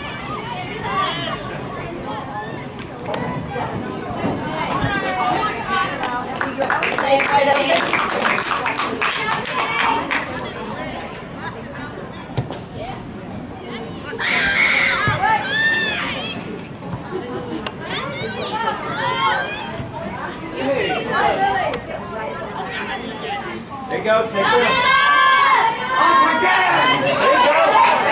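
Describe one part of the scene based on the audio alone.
Men and women in a crowd of spectators shout and cheer nearby, outdoors.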